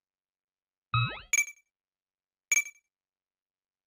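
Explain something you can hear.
Short electronic menu chimes ring out.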